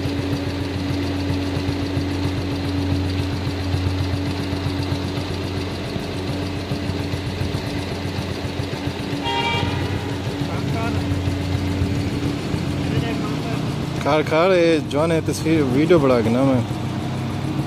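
A motorcycle engine hums steadily in the distance.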